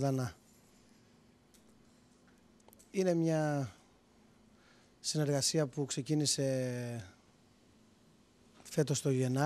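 A man speaks calmly into a handheld microphone.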